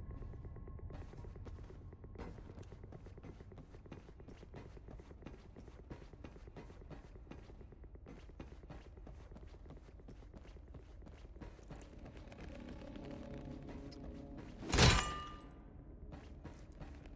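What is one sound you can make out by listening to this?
Footsteps clang on a metal floor at a steady walking pace.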